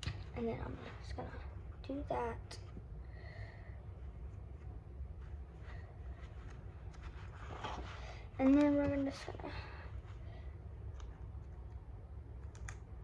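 Paper tape crinkles and rustles.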